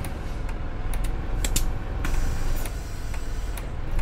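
Bus doors open with a hiss and a clunk.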